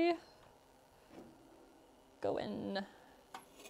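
A metal oven door swings open.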